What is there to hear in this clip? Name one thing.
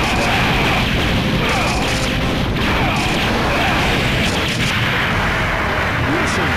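Gunfire and explosions crackle in a video game battle.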